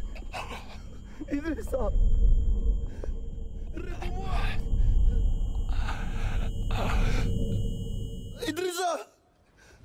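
A man shouts urgently close by.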